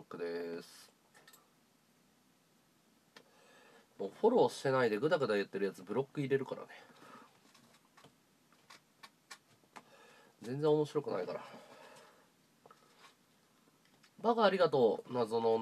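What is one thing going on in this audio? A young man talks casually and close to a phone microphone, in short bursts with pauses.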